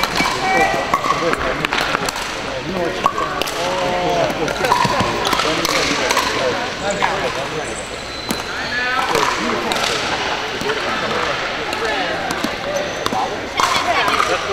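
Many people talk and call out at a distance, echoing.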